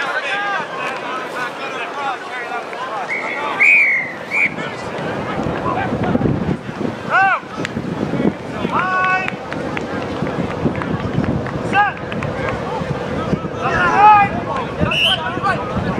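Young women call out to each other on a field.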